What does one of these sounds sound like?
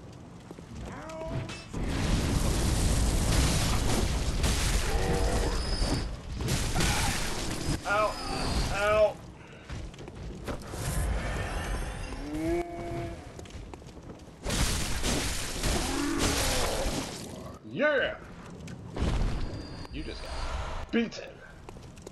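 Monstrous figures grunt and roar in pain.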